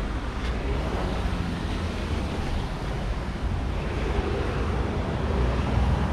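A car engine rumbles steadily as the car drives along.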